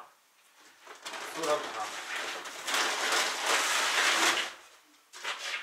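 Grain pours and rustles into a bag.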